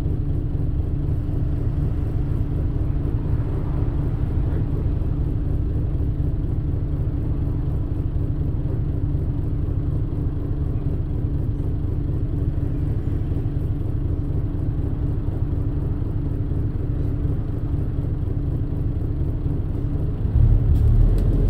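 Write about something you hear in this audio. A bus engine idles with a steady low rumble.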